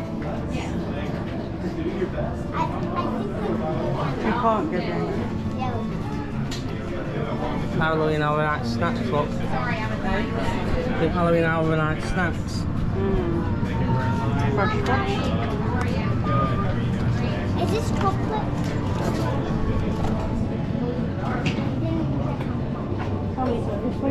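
A crowd of people chatter all around in a busy indoor space.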